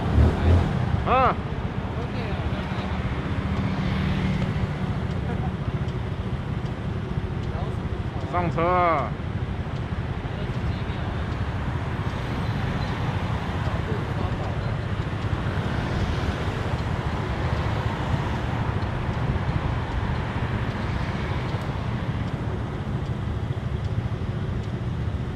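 Traffic rumbles steadily on a city street at night.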